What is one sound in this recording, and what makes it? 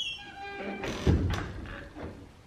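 A door closes with a heavy thud.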